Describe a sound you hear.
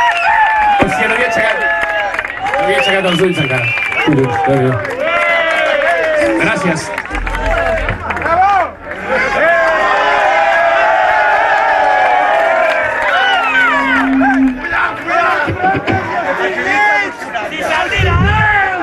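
A man sings into a microphone over loudspeakers.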